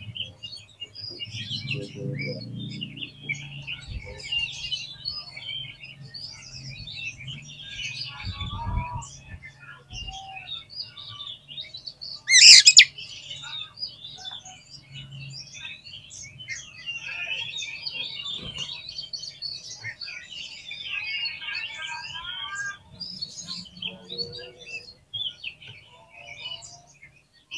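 A caged songbird sings a long, varied stream of high chirps and whistles.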